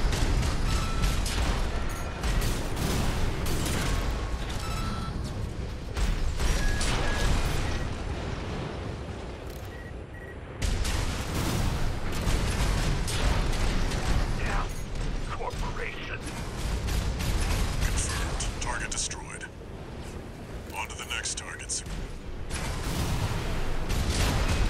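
Thrusters roar with a deep rumble.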